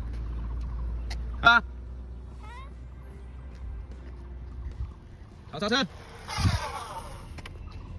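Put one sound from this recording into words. Bicycle tyres roll over concrete.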